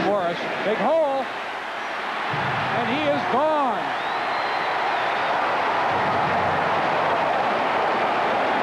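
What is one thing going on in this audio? A large stadium crowd roars and cheers, growing louder.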